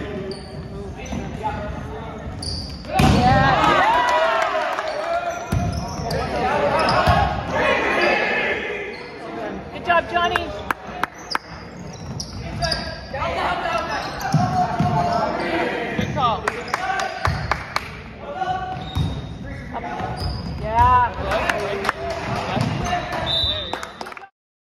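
Teenage boys shout and call out to each other in an echoing gym.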